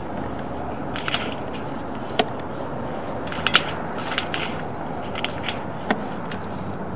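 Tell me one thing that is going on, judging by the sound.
Something hard knocks and taps against the inside of a pipe.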